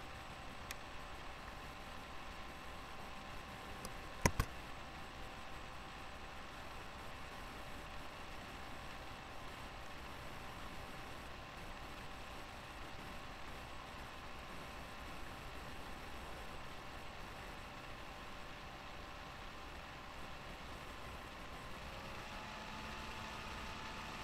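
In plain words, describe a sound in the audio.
A young man speaks quietly and close into a webcam microphone.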